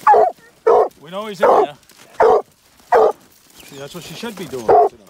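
A dog whines and yowls between barks.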